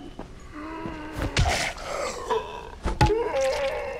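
A snarling creature growls as it charges closer.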